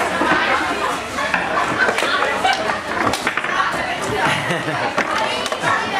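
A ball and figures clatter on a table football game.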